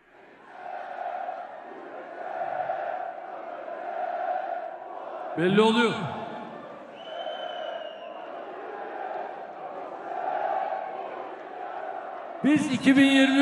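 A large crowd chants rhythmically in a big echoing hall.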